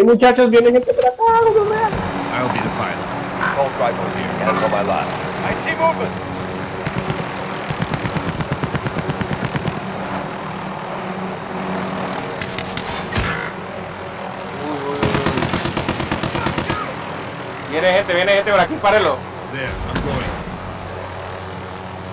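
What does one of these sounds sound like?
A helicopter's engine roars and its rotor thumps steadily overhead.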